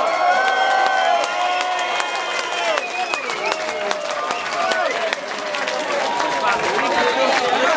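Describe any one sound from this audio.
A man sings loudly through a microphone, heard in a live room.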